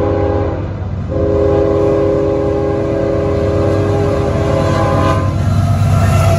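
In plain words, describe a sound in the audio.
A train horn blows loudly.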